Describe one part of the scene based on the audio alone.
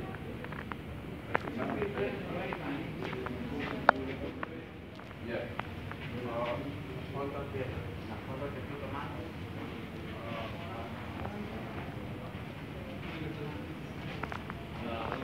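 Men and women murmur in conversation in a large echoing hall.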